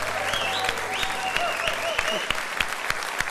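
An audience cheers and whistles.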